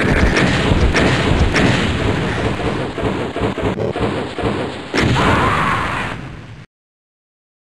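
Video game gunfire blasts repeatedly.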